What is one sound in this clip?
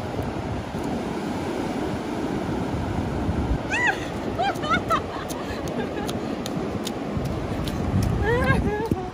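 Waves break and wash steadily onto a beach.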